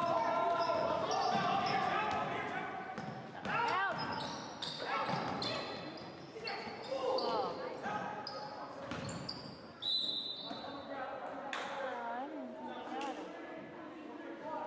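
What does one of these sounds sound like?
Spectators and players shout and call out in a large echoing gym.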